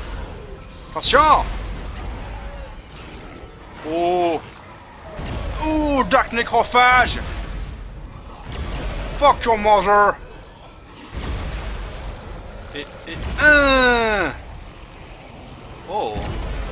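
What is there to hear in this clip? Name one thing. A creature shrieks with sharp, falling cries.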